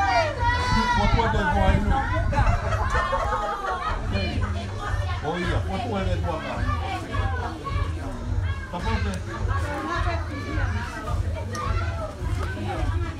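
A group of men and women sing together nearby.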